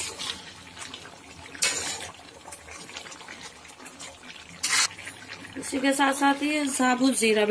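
A metal spatula scrapes and stirs food in a wok.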